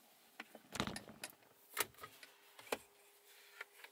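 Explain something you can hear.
A compartment cover slides open with a click.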